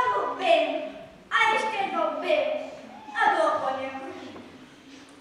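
A girl speaks loudly and with expression on a stage.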